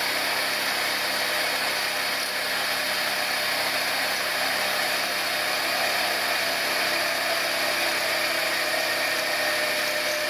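A milling machine cutter grinds steadily through metal with a high, harsh whine.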